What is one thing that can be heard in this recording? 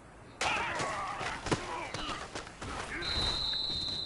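Football players collide with thudding impacts.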